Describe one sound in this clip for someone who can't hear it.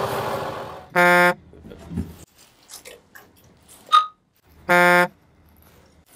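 An electronic beep sounds.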